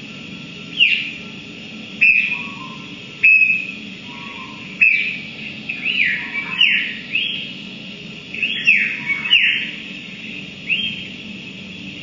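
Sharp electronic chirps sweep downward in pitch from amplifiers, again and again.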